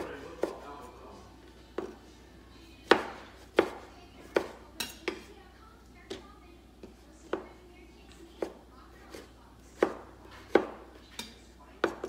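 A knife chops on a wooden cutting board in sharp, uneven knocks.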